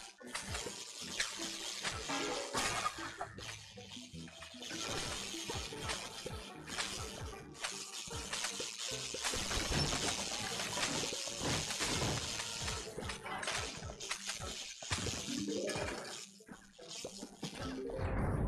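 Electric zaps crackle again and again.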